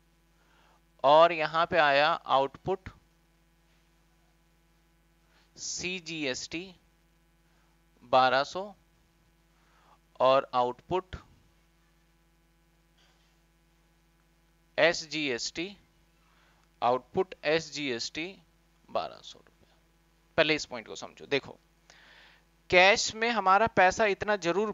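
A man explains calmly into a close microphone, in short bursts with pauses.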